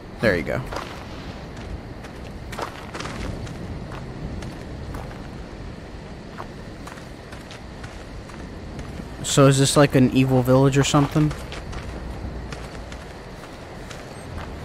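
Footsteps crunch on stones and gravel.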